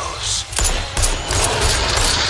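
A pistol fires a shot.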